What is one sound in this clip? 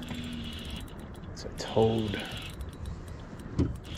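A fishing reel clicks as line is wound in.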